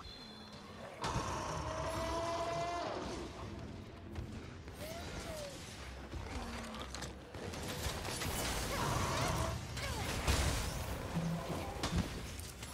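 A monster roars and stomps nearby.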